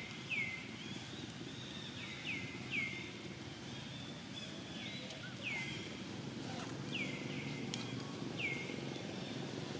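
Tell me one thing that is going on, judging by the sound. A baby monkey gives short, high squeaking calls that drop in pitch.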